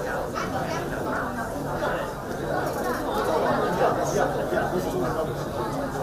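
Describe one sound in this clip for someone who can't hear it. A crowd of men and women talk loudly over one another nearby.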